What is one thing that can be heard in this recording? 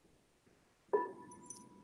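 A gong is struck and rings out over an online call.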